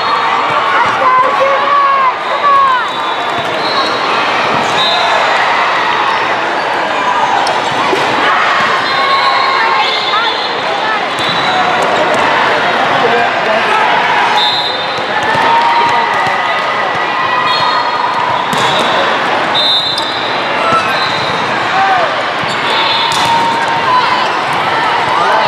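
Young women call out and chatter with one another across the court.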